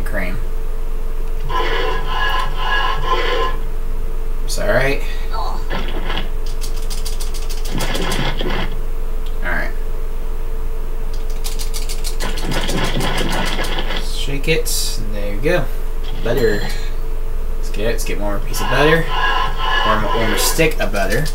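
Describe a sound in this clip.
Cartoonish game sounds and short jingles play through a television speaker.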